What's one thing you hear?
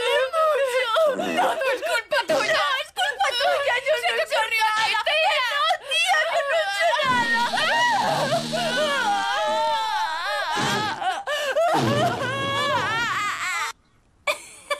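A woman wails and sobs loudly up close.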